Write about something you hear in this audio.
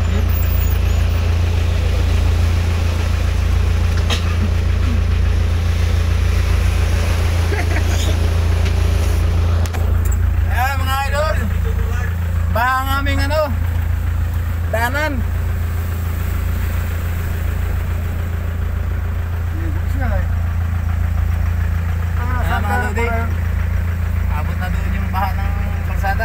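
A vehicle engine rumbles steadily from inside the cab.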